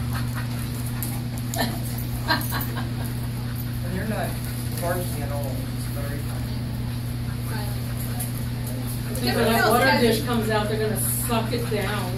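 Dogs scuffle and scrabble their claws on a hard floor.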